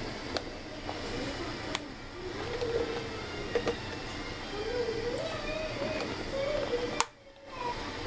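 A plastic tub is knocked and shifted against a metal pot.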